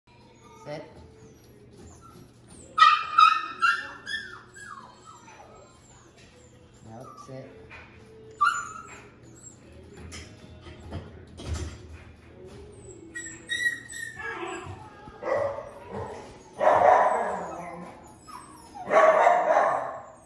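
A puppy chews and licks treats from a hand.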